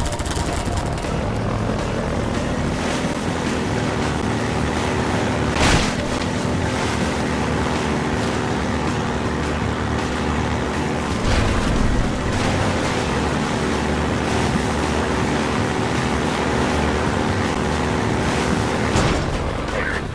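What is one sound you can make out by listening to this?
An engine drones loudly and steadily.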